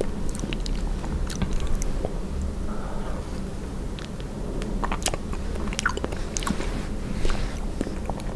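Someone chews soft, sticky food very close to a microphone with wet mouth sounds.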